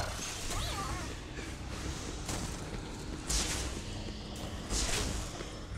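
Energy blasts crackle and boom in bursts.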